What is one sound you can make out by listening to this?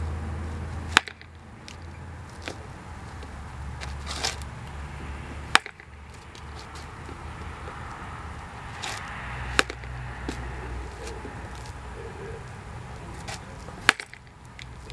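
A baseball bat cracks sharply against a ball every few seconds.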